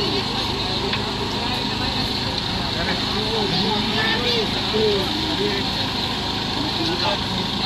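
A crowd of men and women murmurs and talks nearby, outdoors.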